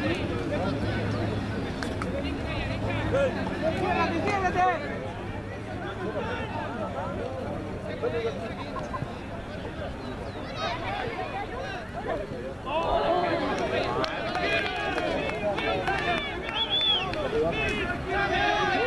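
Children and adults shout and cheer outdoors, some far off.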